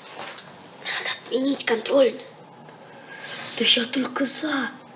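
Another young boy answers in a low voice.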